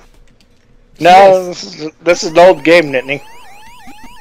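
An arcade game plays a short electronic start-up tune.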